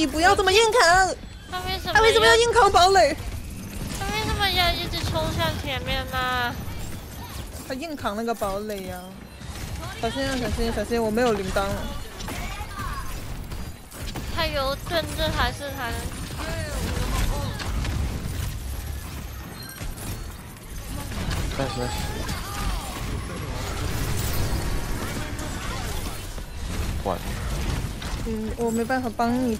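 Energy weapons fire in quick bursts with low booming impacts.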